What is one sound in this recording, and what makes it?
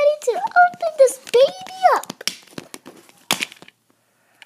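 Plastic toy pieces click and rattle against a plastic container.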